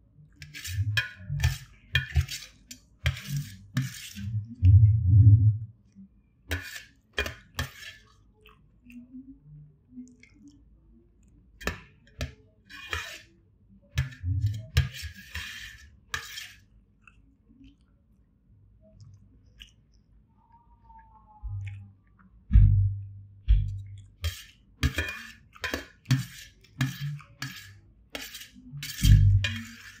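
A spoon scrapes and clinks against a metal plate.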